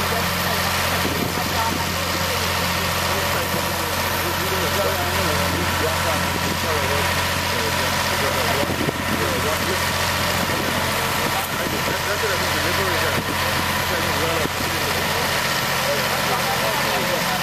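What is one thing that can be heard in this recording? A machine's engine hums steadily nearby.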